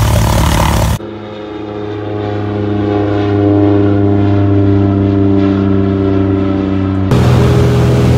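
A small plane's propeller engine drones overhead in the distance.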